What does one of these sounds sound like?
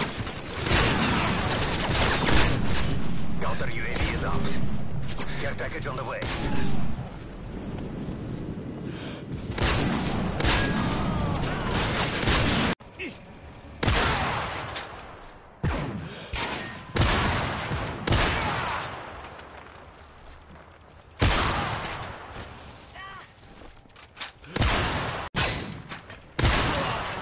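Sniper rifle shots crack loudly, one at a time.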